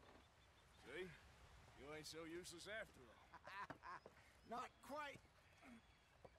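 A man speaks calmly in a low, gruff voice.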